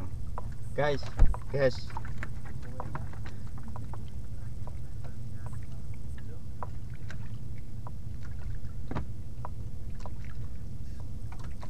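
Water splashes and laps against the hull of a boat.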